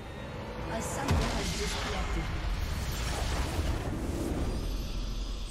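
A loud game explosion booms and rumbles.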